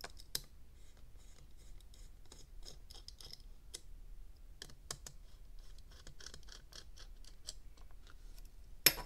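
A small screwdriver ticks and clicks against tiny screws.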